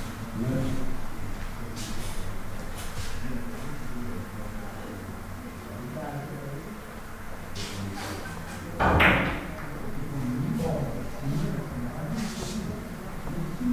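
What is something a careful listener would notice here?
Billiard balls click against each other and the cushions.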